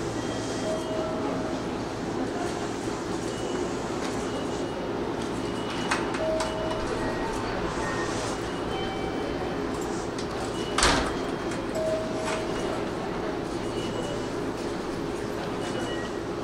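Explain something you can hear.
A stopped electric train hums steadily.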